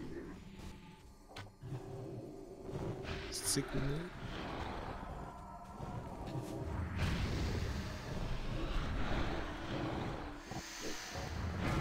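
Fire roars in bursts.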